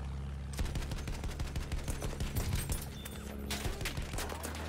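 Machine guns rattle in rapid bursts.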